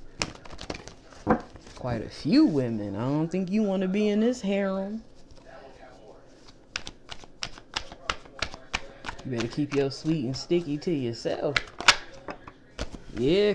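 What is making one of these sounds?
Playing cards riffle and flick as they are shuffled close by.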